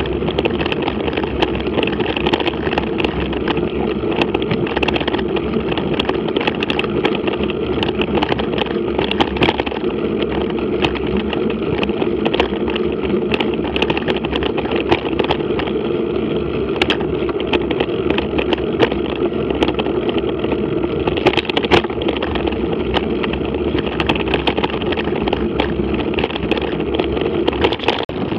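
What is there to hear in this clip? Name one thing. Bicycle tyres rattle and clatter over a rough cobbled street.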